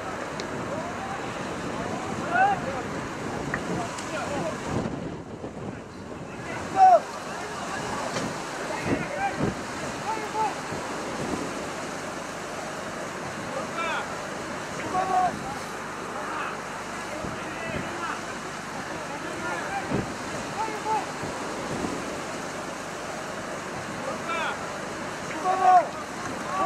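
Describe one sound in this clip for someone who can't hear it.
Players shout to each other across an open outdoor field.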